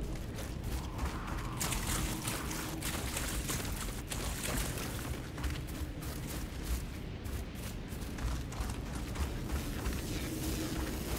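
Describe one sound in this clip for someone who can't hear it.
Footsteps run over ground and grass.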